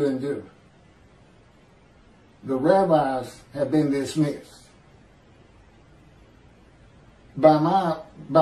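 A middle-aged man speaks calmly into a microphone in short bursts with pauses.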